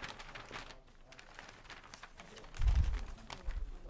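Papers rustle.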